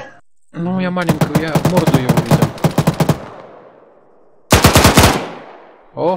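A rifle fires loud rapid bursts that echo away.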